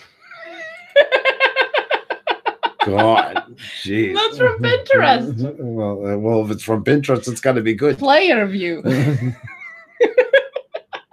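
A woman laughs loudly through an online call.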